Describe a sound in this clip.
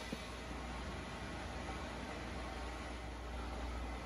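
Coffee pours into a mug.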